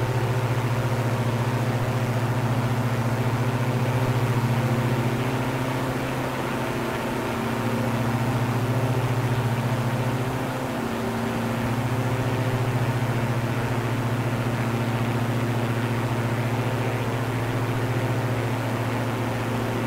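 A propeller plane's engine drones steadily, its pitch shifting slightly now and then.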